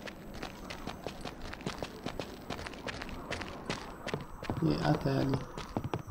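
Footsteps run across a wooden floor.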